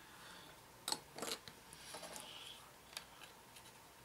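A small object clicks and taps against a hard surface as it is handled.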